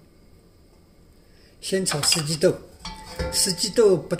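A metal pan scrapes across a stove grate.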